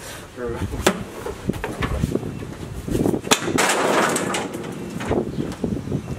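Wooden boards clatter as a man throws them off a porch.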